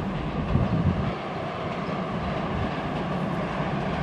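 A train approaches from a distance with a low rumble.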